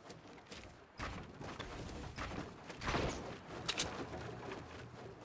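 Building pieces clack and thud into place in quick succession.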